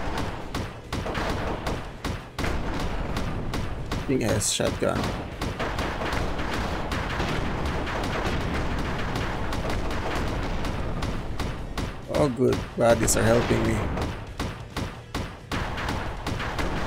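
Rapid gunfire rattles on and on.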